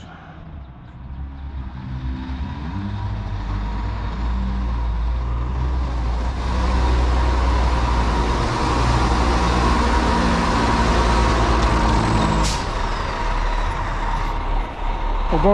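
A heavy truck engine rumbles as the truck drives up and passes close by.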